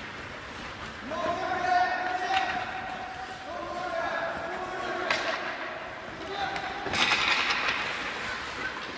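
Young players shout and call out across the rink.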